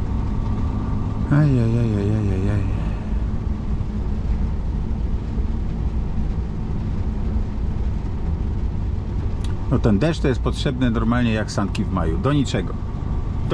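Tyres roll steadily on the road.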